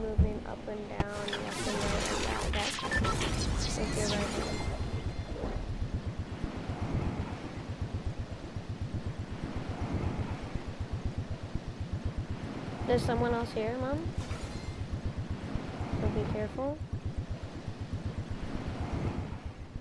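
Wind rushes past steadily with a fluttering pulse.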